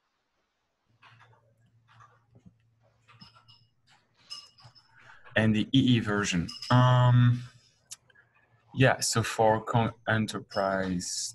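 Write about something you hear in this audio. Another man speaks calmly over an online call.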